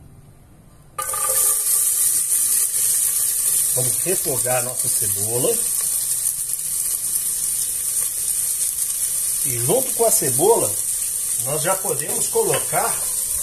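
Chopped onions sizzle loudly in hot oil.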